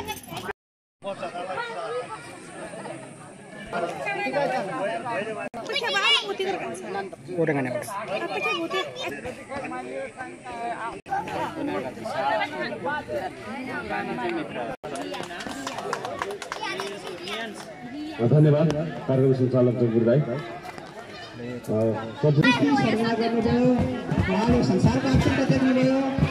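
A crowd of men and women talk outdoors.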